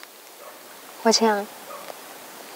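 A young woman speaks briefly and softly nearby.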